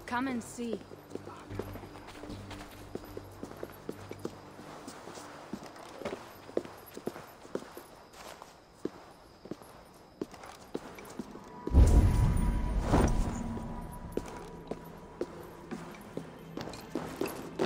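Footsteps walk on stone.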